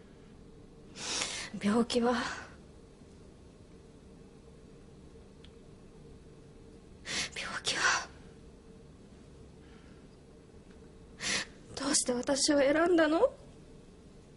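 A young woman speaks softly through tears, her voice trembling.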